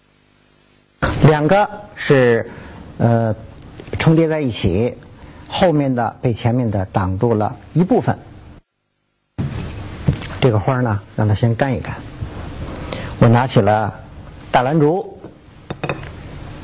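An elderly man speaks calmly and clearly into a microphone.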